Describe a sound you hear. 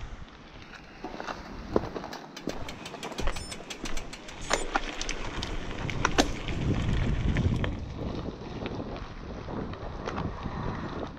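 Bicycle tyres crunch and rattle over a rough gravel track.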